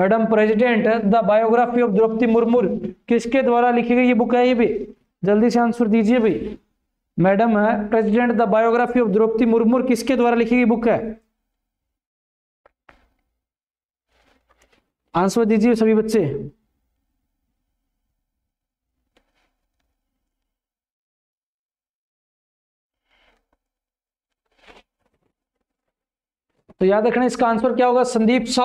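A man speaks with animation close to a microphone, pausing now and then.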